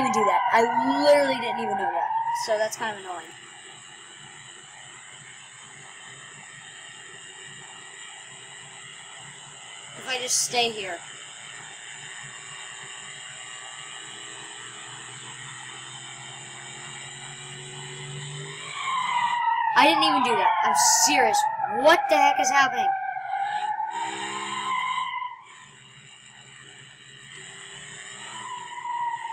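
A car engine roars steadily as the car speeds up.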